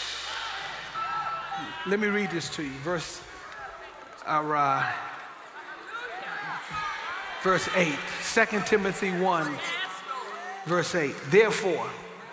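An elderly man reads aloud through a microphone in a large hall.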